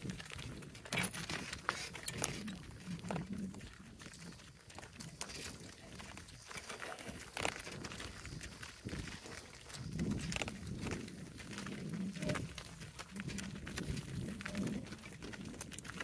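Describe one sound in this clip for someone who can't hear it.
Hooves clop steadily on a dirt path.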